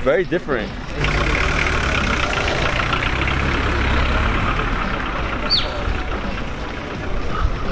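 A crowd of people murmurs outdoors in the distance.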